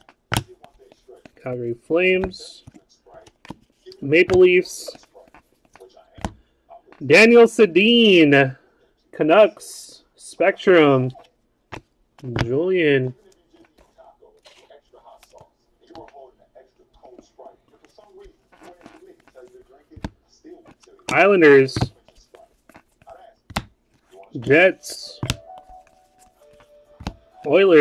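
Trading cards slide and flick against each other in the hands.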